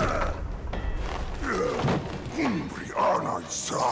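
A man grunts and groans as he struggles.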